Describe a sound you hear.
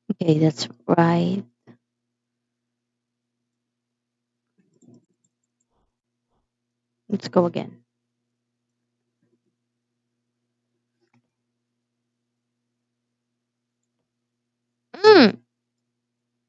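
A young girl talks into a close microphone in short bursts.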